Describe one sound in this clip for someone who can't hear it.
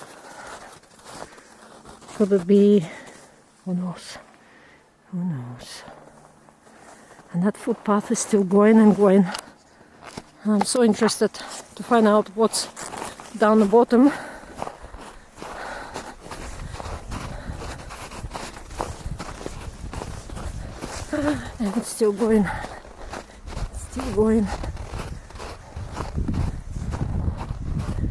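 Footsteps crunch on snow close by.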